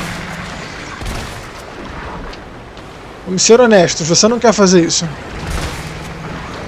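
A shotgun fires with a heavy boom.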